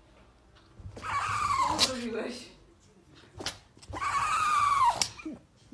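A small dog howls in long, wavering cries close by.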